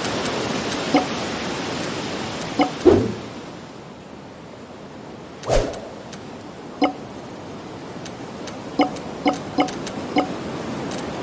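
Short electronic pops sound as game menus open and items are picked.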